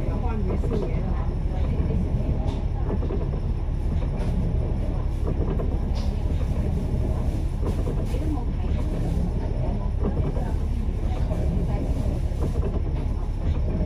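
A minibus engine idles with a deep, steady rumble close by.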